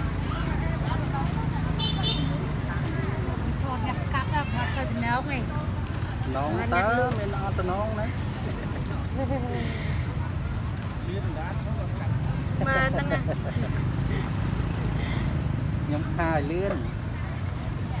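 A woman talks nearby in a casual voice.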